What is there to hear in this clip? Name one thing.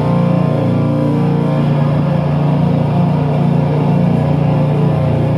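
A drummer plays a drum kit loudly, with crashing cymbals.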